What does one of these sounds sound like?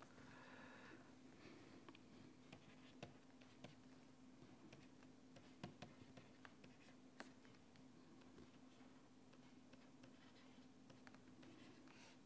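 A stylus taps and clicks against a hard surface.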